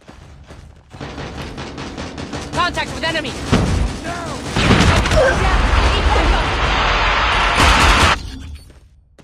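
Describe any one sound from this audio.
Automatic gunfire rattles in bursts.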